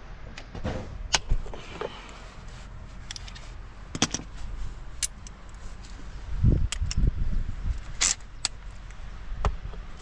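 Metal tools clink and knock against an engine.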